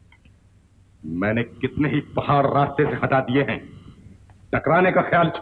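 An elderly man speaks sternly and loudly.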